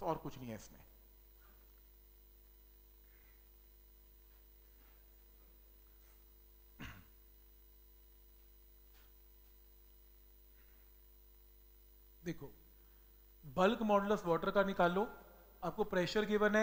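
A man speaks calmly through a headset microphone.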